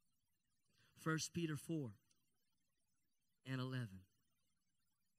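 A man speaks calmly into a microphone over loudspeakers in short phrases with pauses.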